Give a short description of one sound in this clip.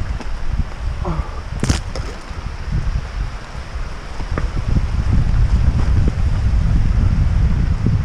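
A stream rushes and babbles nearby.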